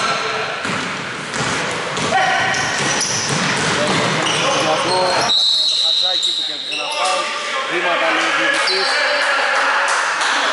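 Men shout to each other in an echoing gym.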